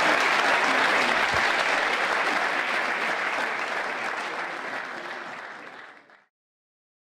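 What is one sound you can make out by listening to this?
A large audience applauds in a big hall, and the clapping slowly fades out.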